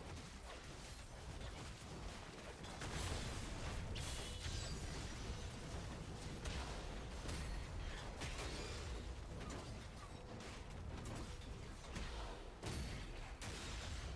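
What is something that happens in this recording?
Game battle sounds clash and burst with spell effects.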